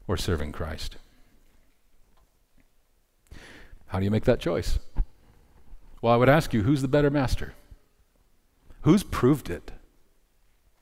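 A man speaks calmly through a headset microphone, pausing between phrases.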